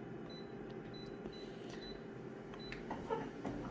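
A machine's touch panel beeps briefly.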